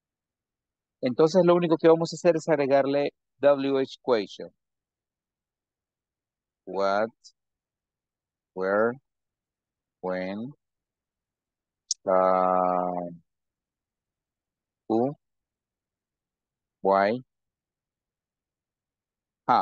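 A man speaks through an online call, reading words out slowly with pauses.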